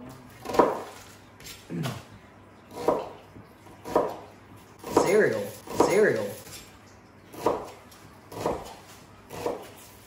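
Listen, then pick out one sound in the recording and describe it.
A knife chops on a cutting board in steady, regular strokes.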